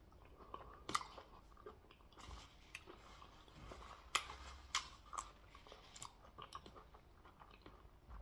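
A man chews food wetly and loudly close to a microphone.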